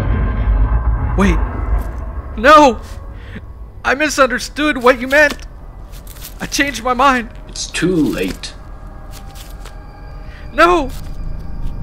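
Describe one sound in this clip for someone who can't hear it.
A man shouts in desperate pleading, close by.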